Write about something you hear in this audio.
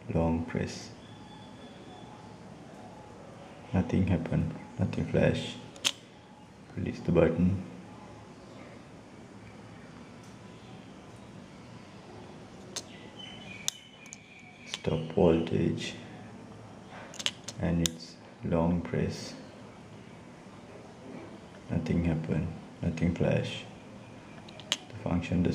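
Small push buttons click softly several times.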